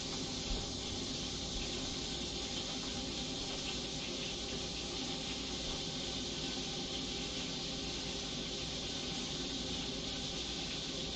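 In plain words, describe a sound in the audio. Butter sizzles and bubbles in a pot.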